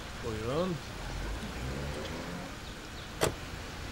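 A car door shuts.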